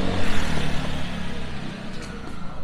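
A motor scooter engine hums close by and passes.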